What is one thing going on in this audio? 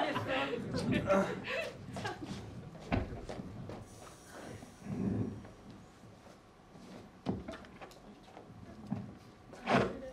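Footsteps tap across a wooden stage in a large room.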